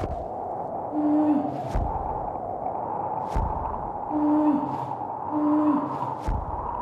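A huge bird gives short cries.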